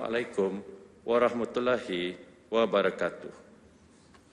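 A man reads out solemnly into a microphone.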